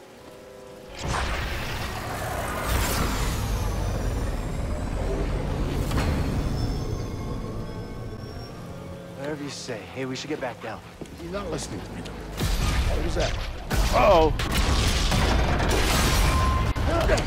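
A laser beam roars with a deep rumble.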